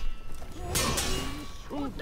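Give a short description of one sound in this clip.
Steel swords clash with a sharp ringing clang.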